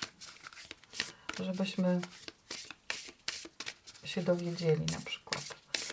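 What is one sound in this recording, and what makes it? Cards are shuffled, riffling and tapping close by.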